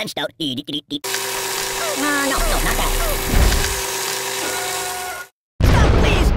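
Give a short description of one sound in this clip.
A shredder grinds and whirs.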